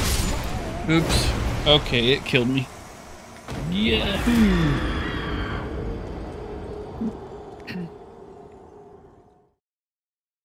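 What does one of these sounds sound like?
A heavy monster crashes and thuds in a fight.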